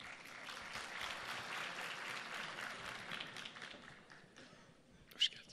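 A large crowd applauds in a big hall, then the clapping fades.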